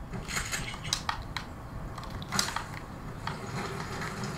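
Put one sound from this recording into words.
A shopping cart rattles as it is pushed.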